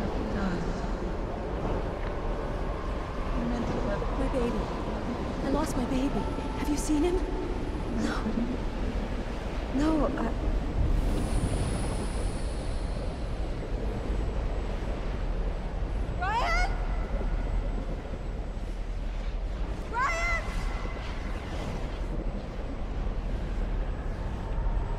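A strong wind howls and roars steadily.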